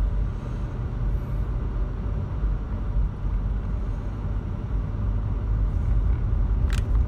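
A car drives along with a steady low rumble of engine and tyres.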